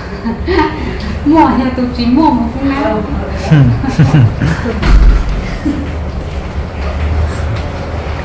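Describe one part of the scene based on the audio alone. A young woman talks with animation into a phone.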